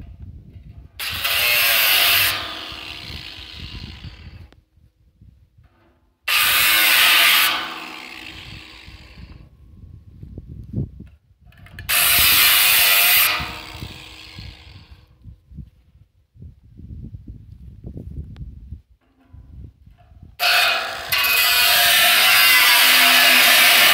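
An angle grinder whines loudly in short bursts, spinning up and winding down.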